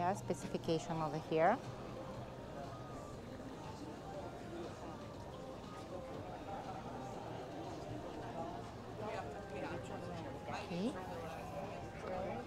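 Men and women chatter in a lively crowd nearby, outdoors.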